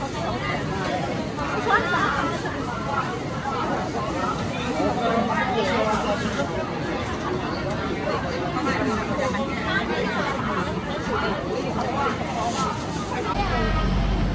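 A woman customer speaks calmly close by.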